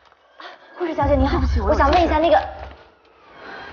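A young woman speaks urgently and anxiously, close by.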